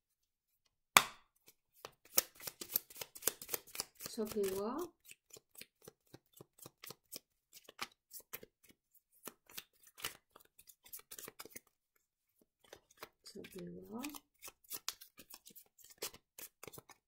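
A deck of cards is shuffled with quick, riffling clicks.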